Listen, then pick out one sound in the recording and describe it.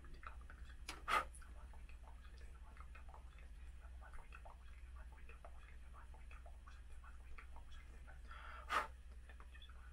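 A man breathes out sharply close by.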